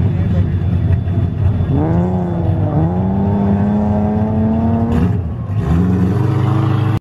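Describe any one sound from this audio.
A car engine revs hard and roars.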